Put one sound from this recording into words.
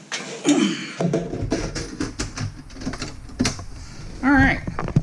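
A metal cover slides and clunks shut onto a computer case.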